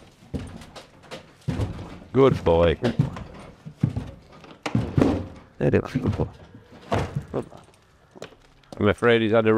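A horse's hooves clomp on a hollow wooden ramp.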